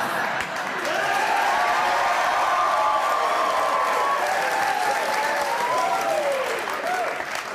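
A studio audience cheers and whoops.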